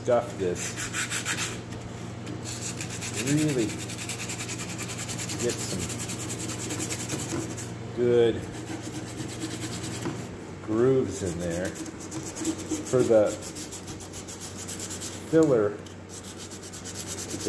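Sandpaper rasps back and forth over a surface in quick, steady strokes.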